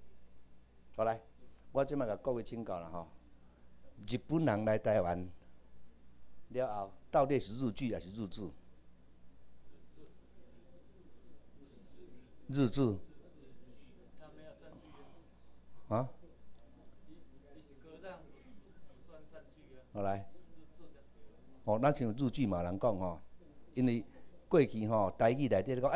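A middle-aged man lectures through a microphone in a room, speaking calmly with pauses.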